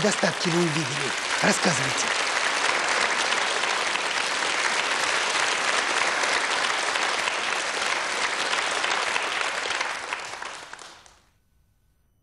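A large audience applauds loudly and then fades away.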